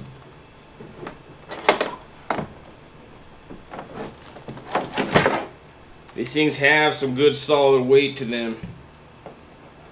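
Power tool parts clunk on a plastic case.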